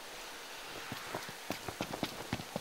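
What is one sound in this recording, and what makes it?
Footsteps swish through wet grass.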